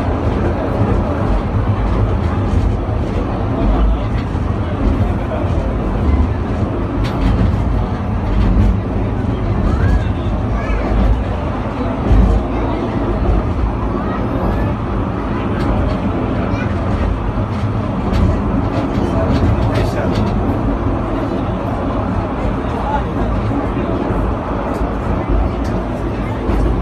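A funicular car rumbles steadily along its track.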